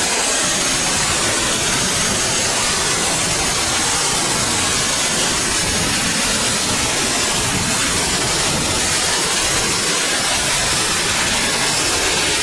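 A large diesel engine roars loudly and steadily close by.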